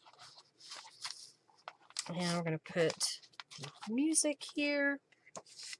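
Paper rustles and shuffles under hands.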